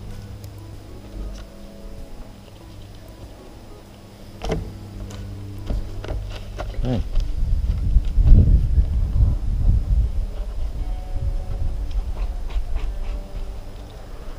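A plastic spreader scrapes and taps as filler is mixed and spread.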